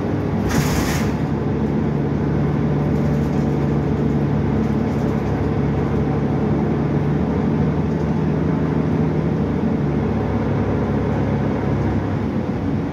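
The bus rattles and creaks as it drives.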